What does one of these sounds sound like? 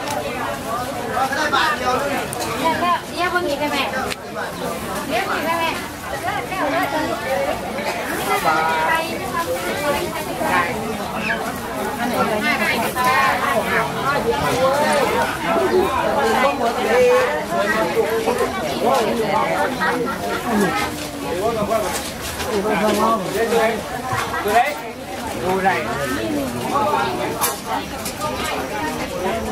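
A crowd of men and women chatter all around outdoors.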